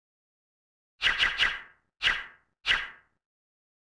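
Short electronic chimes sound one after another.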